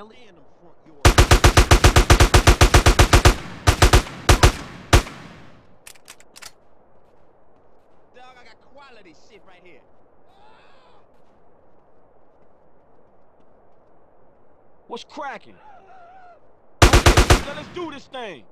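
A gun fires in rapid bursts of sharp shots.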